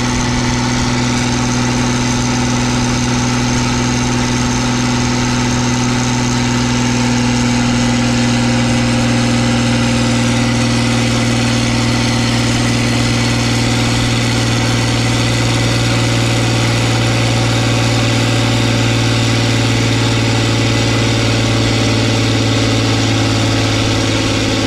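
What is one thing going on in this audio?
A diesel tractor engine idles loudly and steadily close by.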